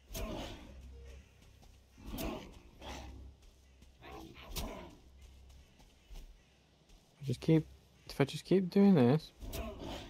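Footsteps tread softly over grass and undergrowth.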